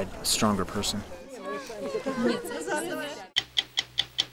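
A young girl speaks cheerfully close by.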